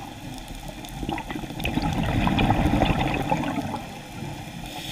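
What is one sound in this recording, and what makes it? Air bubbles gurgle and rumble close by underwater.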